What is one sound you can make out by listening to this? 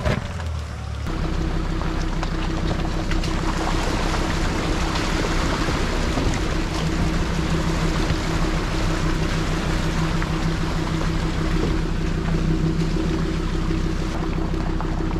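A car engine hums steadily, heard from inside a moving car.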